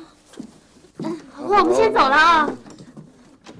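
A young woman speaks brightly up close.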